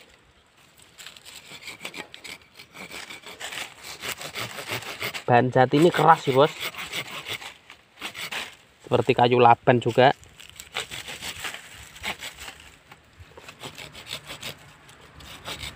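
A hand saw cuts back and forth through a thin root with a rasping sound.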